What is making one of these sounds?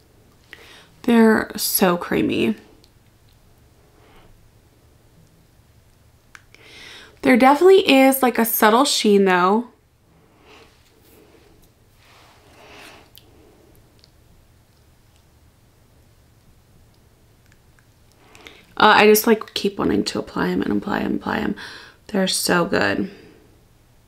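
A young woman talks calmly and close up, in short bursts.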